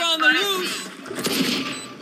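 A gun fires a shot close by.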